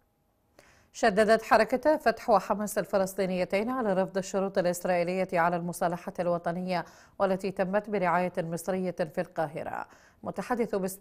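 A woman reads out news calmly and clearly into a microphone.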